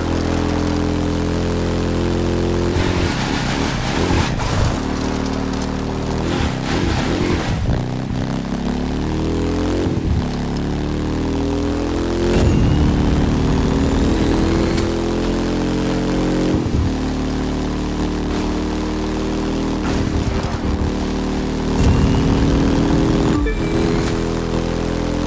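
A motorcycle engine roars steadily, its pitch climbing and dropping as it changes gear.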